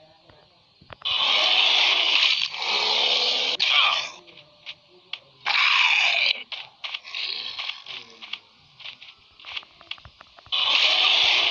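A bear roars and growls loudly.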